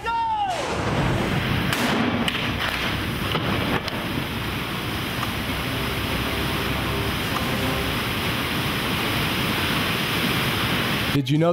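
Water bursts from a large pipe and crashes down in a loud, roaring torrent.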